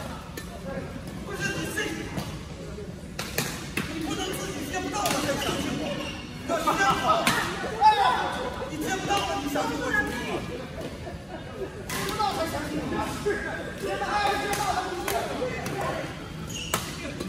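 Men talk and call out nearby during play.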